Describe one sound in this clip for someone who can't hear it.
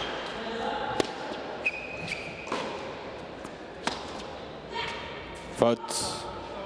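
A tennis ball is struck with a racket in a sharp pop.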